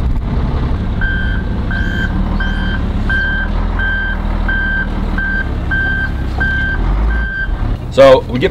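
A reversing alarm beeps at a steady pace.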